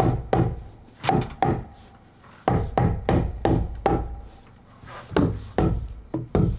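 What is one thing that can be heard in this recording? A hammer strikes wood again and again with sharp knocks.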